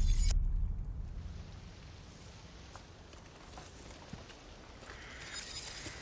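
Footsteps crunch slowly on a leafy forest path.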